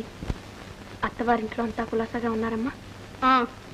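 A woman speaks softly and pleadingly.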